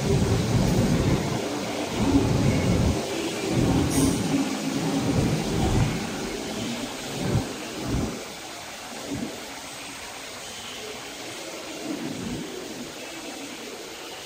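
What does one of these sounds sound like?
A train rumbles out of the station and fades into the distance.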